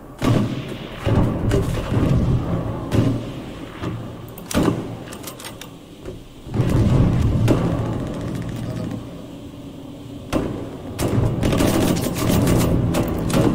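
A heavy machine gun fires in short bursts.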